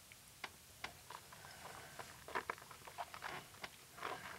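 An elderly man sniffs the drink close to a microphone.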